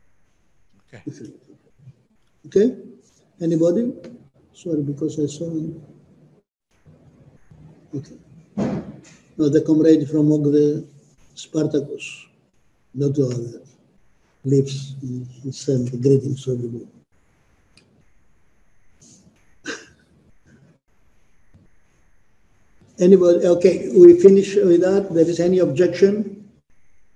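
An elderly man speaks calmly in bursts with pauses, heard through an online call.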